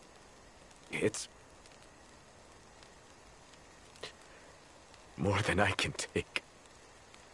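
A young man speaks quietly and wearily, close by.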